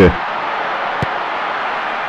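A football is kicked with a short thud.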